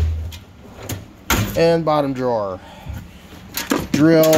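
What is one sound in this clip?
Hands shift tool cases and bags, which bump and rustle.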